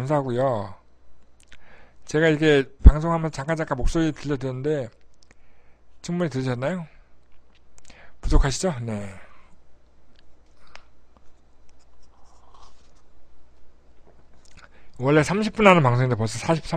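A middle-aged man talks calmly into a microphone, with pauses.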